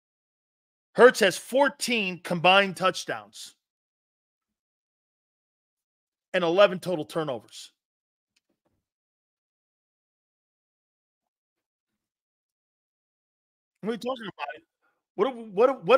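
A middle-aged man speaks with animation into a close microphone, in short bursts with pauses.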